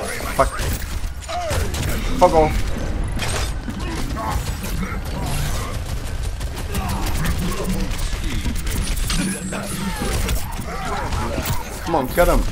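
Gunfire from a game rattles rapidly.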